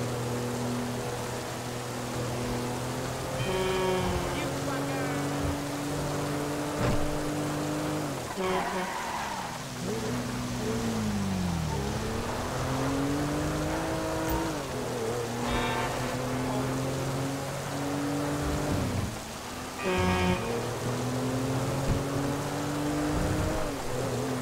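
A car engine hums and revs, shifting up and down through the gears.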